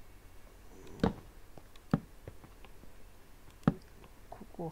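A pickaxe chips at stone with short, sharp knocks.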